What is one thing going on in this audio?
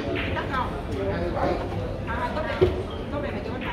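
Billiard balls knock against each other and the cushions.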